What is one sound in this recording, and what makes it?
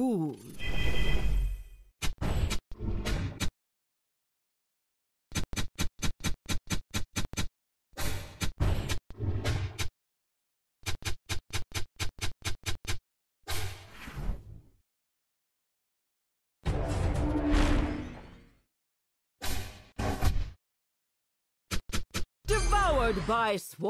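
Synthetic magic-attack sound effects zap and boom in quick bursts.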